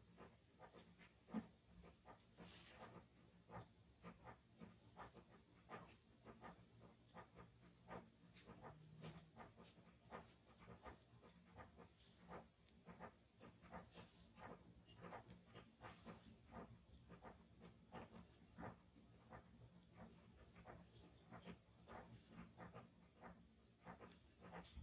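A brush taps and scratches softly on paper.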